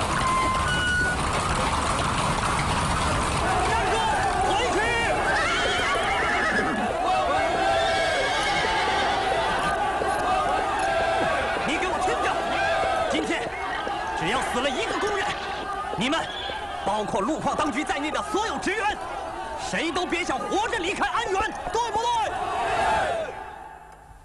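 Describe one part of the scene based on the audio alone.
A large crowd shouts and clamours loudly outdoors.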